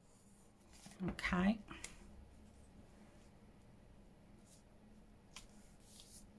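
Paper crinkles and rustles as hands press it down.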